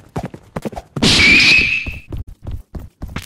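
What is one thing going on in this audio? A sharp game effect bursts loudly.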